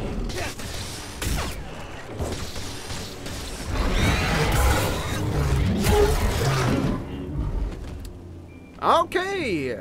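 Lightsaber blades clash and hum.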